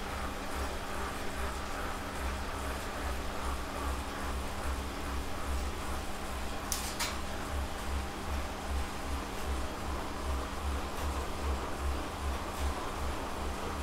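An indoor bike trainer hums with a low, rhythmic pulse.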